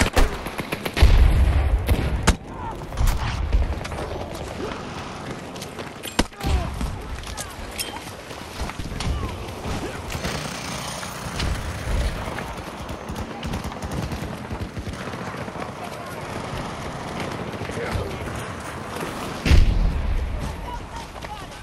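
Loud explosions boom close by.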